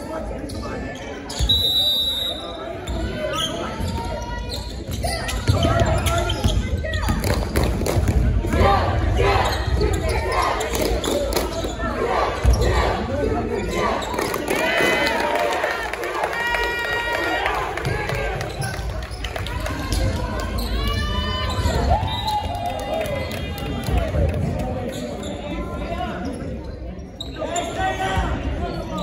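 Spectators talk and shout in a large echoing gym.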